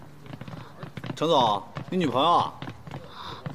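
A young woman speaks with surprise.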